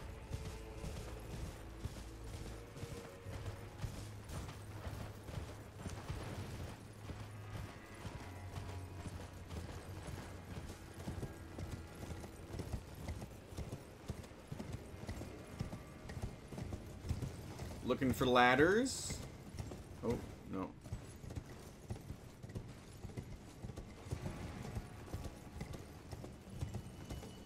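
A horse's hooves clop steadily at a gallop.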